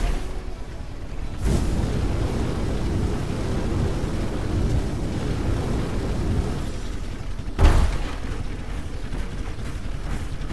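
A heavy robot walker stomps along with mechanical thuds.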